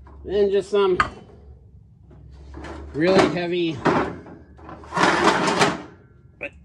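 Heavy metal springs clank and rattle against a metal box.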